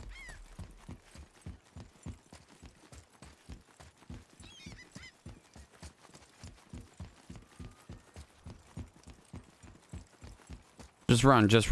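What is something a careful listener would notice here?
Footsteps thud in a quick, steady run.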